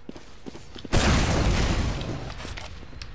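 A gun fires a rapid burst.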